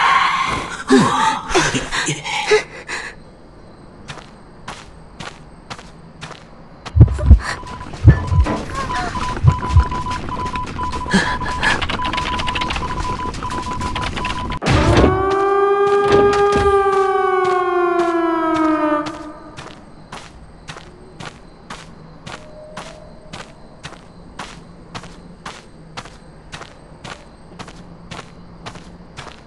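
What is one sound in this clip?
Footsteps tap along at a steady pace.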